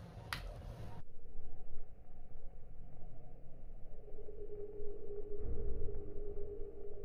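Liquid simmers and bubbles in a pot.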